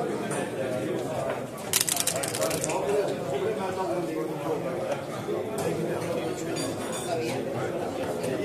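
Plastic game pieces click as a hand slides them across a board.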